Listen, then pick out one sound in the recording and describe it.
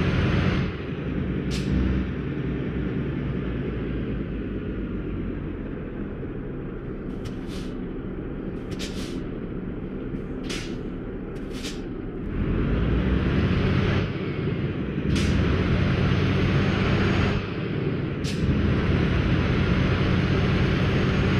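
A truck engine rumbles steadily, growing louder as the truck speeds up.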